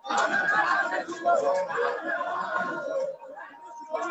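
A large crowd chants loudly together outdoors.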